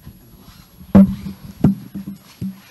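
A sharp knock sounds close to a microphone.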